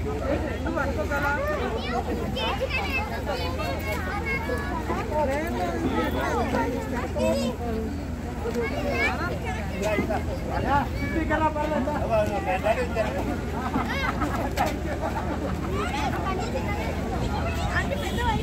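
A crowd of men, women and children talks and calls out nearby outdoors.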